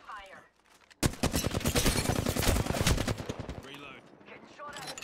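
A rifle fires rapid bursts of shots up close.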